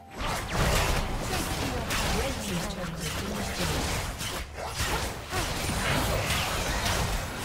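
Magic blasts and impacts crackle and boom during a fast fight.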